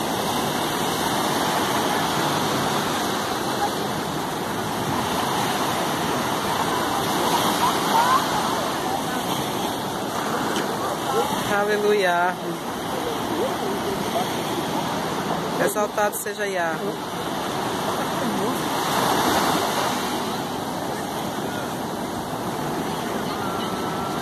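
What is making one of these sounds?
Waves break and wash up on the shore close by.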